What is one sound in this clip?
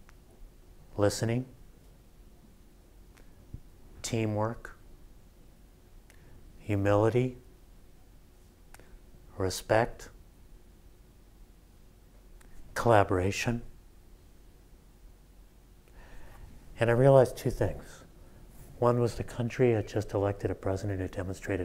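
A middle-aged man speaks into a microphone in short, spaced phrases.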